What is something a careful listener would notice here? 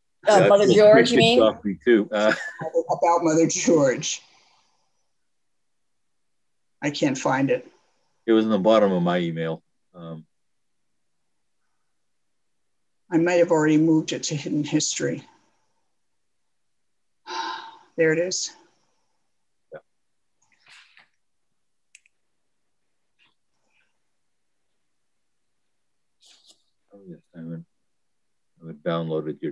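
An elderly woman speaks calmly and closely into a microphone, heard over an online call.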